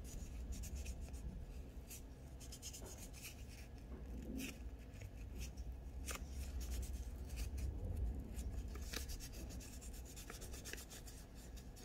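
A wipe rubs against a fingernail.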